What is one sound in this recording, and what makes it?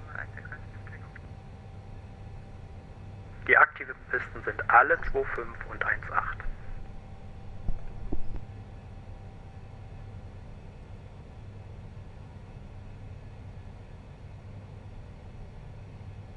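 A jet airliner's engines hum steadily in flight.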